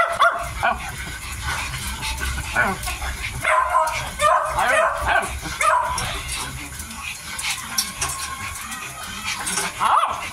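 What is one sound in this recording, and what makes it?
Puppies suck and slurp noisily.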